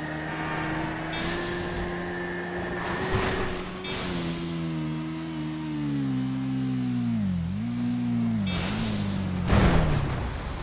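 A motorcycle engine revs and whines, its pitch rising and falling.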